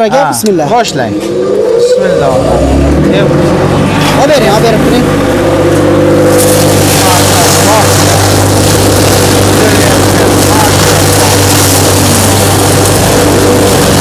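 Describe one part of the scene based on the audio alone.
Electric motors start up and hum steadily.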